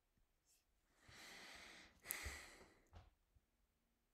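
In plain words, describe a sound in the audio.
A man laughs softly close to a microphone.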